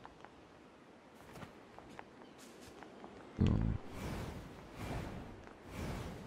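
Light footsteps patter quickly on the ground.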